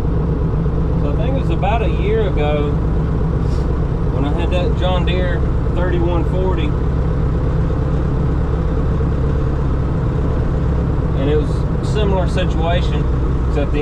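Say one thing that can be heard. A man talks calmly over the engine noise.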